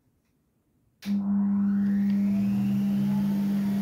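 A player instrument suddenly starts playing a steady, held note.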